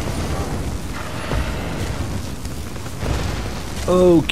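Magic spells crackle and zap in combat.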